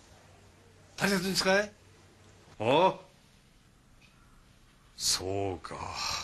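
A man speaks on a phone.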